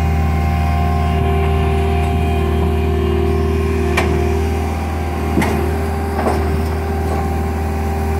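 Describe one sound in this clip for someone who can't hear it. Metal tracks clank and bang on a trailer ramp.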